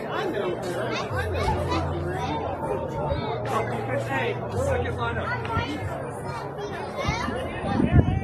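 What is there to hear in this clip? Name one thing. Young girls shout and call out outdoors on an open field.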